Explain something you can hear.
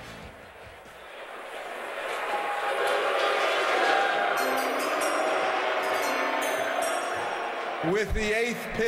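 A crowd in a large hall cheers and murmurs loudly.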